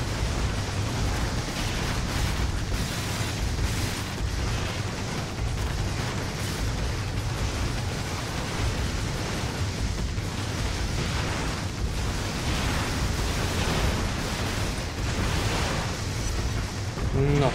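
Explosions and blasts boom loudly and rumble.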